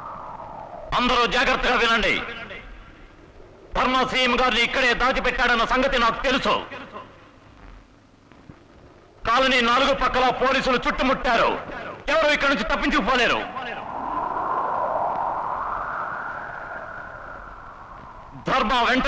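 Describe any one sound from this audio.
A man shouts forcefully through a megaphone.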